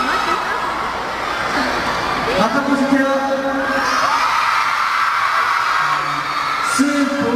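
A young man speaks with animation through a microphone over loudspeakers.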